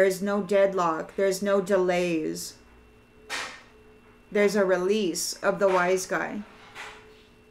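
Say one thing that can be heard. A woman speaks calmly and close by, heard through a computer microphone.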